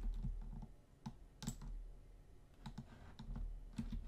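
Blocks crunch and break in quick taps.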